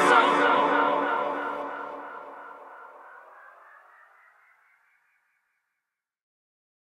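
A synthesizer tone rings out and slowly fades away.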